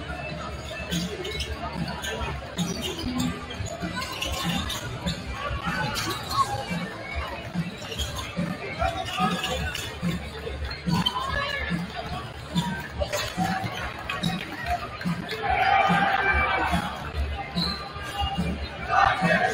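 Basketballs bounce on a wooden floor.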